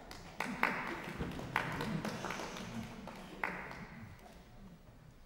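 A string quartet plays in a reverberant hall, with sharp plucked and bowed accents.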